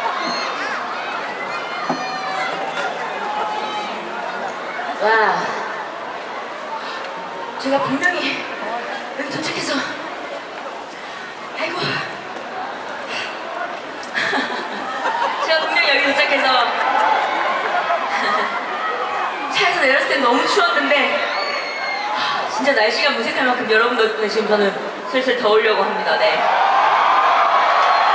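A young woman sings into a microphone, heard through loudspeakers.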